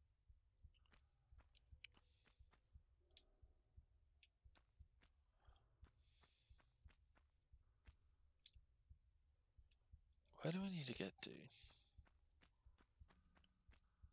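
Quick footsteps patter on a stone floor.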